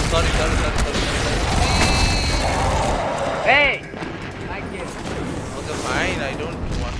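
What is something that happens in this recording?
Gunfire and blasts ring out in a video game.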